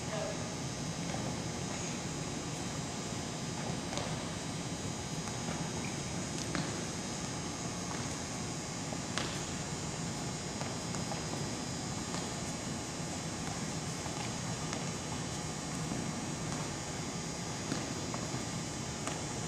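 Sneakers squeak and thud on a floor in a large echoing hall.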